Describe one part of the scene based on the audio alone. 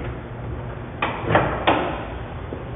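A car bonnet latch clicks and the bonnet is lifted open.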